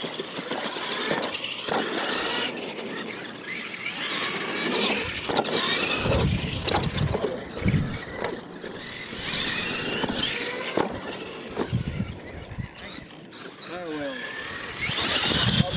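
Plastic tyres crunch and scrape on loose dirt.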